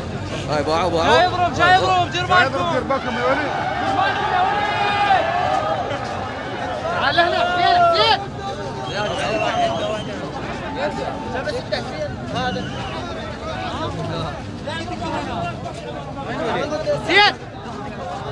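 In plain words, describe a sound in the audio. A man shouts close by.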